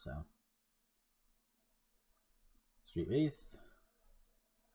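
A man speaks briefly and casually into a close microphone.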